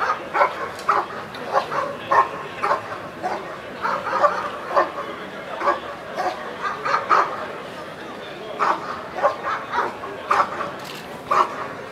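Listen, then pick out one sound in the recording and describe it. A large dog barks loudly and repeatedly, outdoors.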